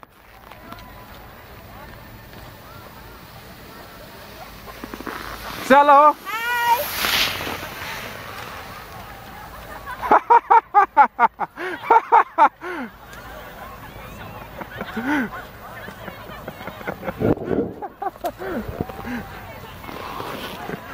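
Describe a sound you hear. Skis scrape and hiss over packed snow.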